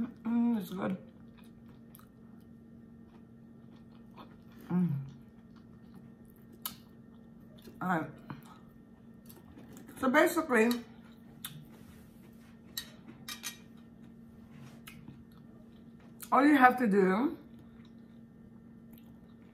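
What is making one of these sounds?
A woman chews food close to a microphone.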